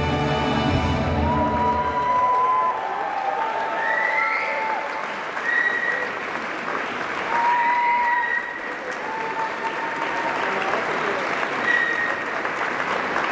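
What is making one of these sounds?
Dancers' feet step and shuffle on a wooden floor.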